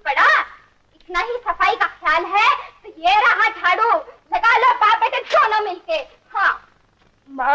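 A woman cries out pleadingly, close by.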